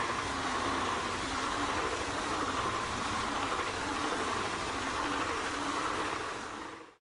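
Train wheels clatter rapidly over the rail joints.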